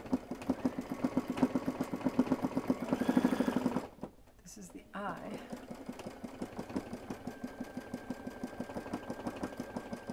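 An embroidery machine stitches with a fast, steady rattling tap.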